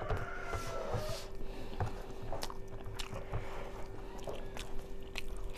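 A young woman chews food noisily close by.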